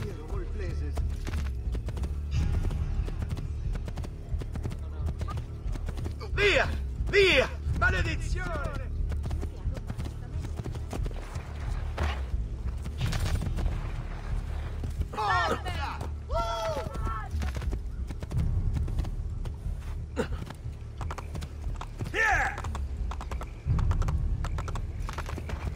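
A horse gallops, its hooves thudding steadily on the ground.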